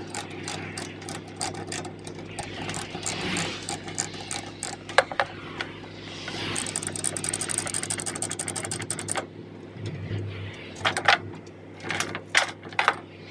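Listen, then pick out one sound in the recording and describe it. A metal chain rattles and clinks.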